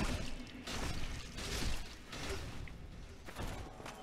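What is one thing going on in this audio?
A sword slashes and hits a body.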